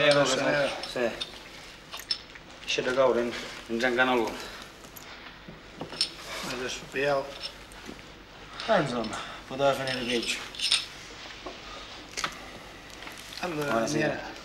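Men talk calmly and closely in turns.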